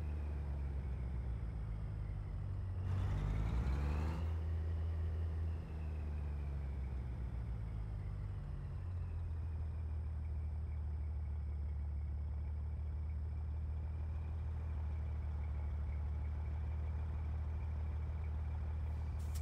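A truck's diesel engine idles with a low, steady rumble.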